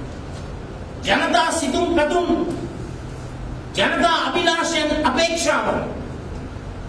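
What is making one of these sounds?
A man speaks forcefully into microphones, in two loud bursts with pauses between.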